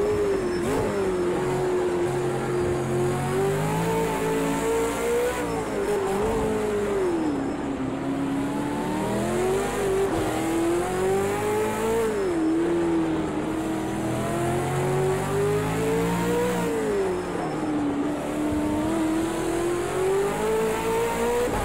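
A racing car engine roars, rising and falling in pitch as the gears shift.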